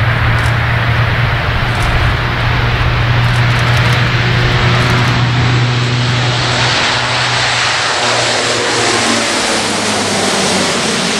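Propeller engines of a large aircraft roar loudly and steadily, then pass close by.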